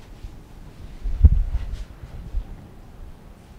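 A cloth rubs across a whiteboard.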